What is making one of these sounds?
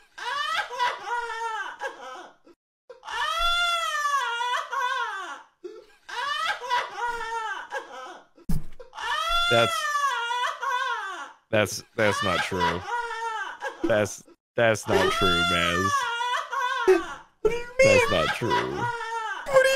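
A young man laughs loudly into a microphone.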